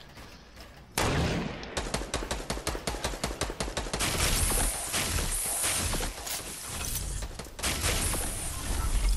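Video game walls and ramps clatter rapidly into place.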